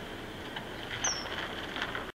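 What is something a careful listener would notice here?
A kingfisher gives a short, sharp, high call.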